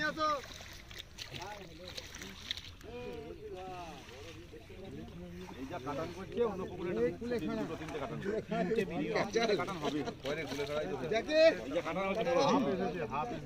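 Several men talk and call out with animation outdoors, close by.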